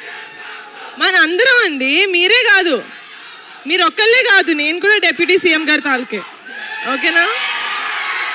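A young woman speaks with animation into a microphone over loudspeakers.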